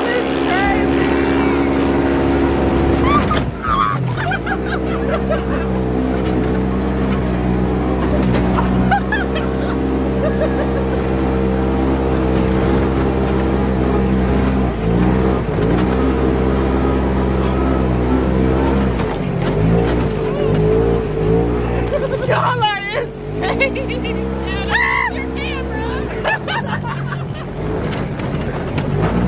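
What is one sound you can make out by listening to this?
A vehicle engine drones and revs steadily.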